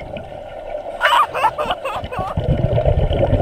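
Air bubbles from a diver's breathing gurgle and burble underwater.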